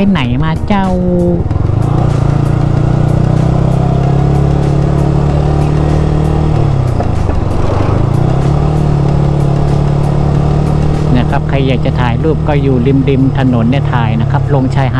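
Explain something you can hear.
A motorcycle engine hums steadily, briefly dropping in pitch before picking up again.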